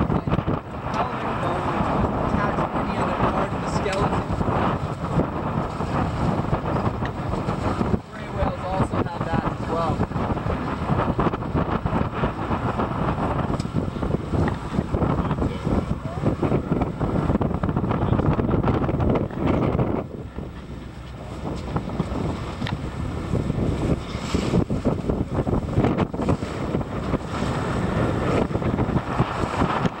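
Choppy waves slap and splash against the boat.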